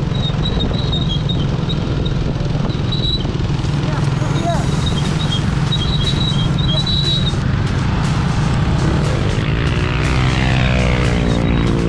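Motorcycle engines hum nearby.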